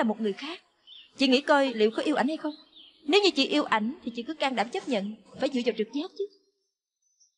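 A young woman speaks earnestly and questioningly, close by.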